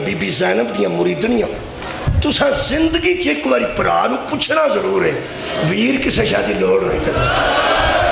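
A middle-aged man speaks passionately into a microphone, heard through a loudspeaker.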